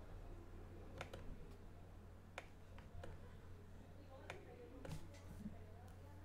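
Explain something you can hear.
Keyboard keys click now and then, close by.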